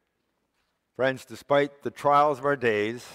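An elderly man speaks clearly through a microphone in an echoing hall.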